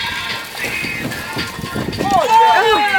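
Water splashes and churns as a fish thrashes beside a boat.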